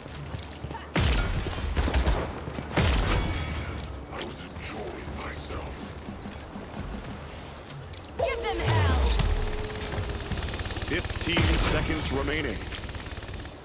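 Sci-fi energy gun shots blast loudly in bursts.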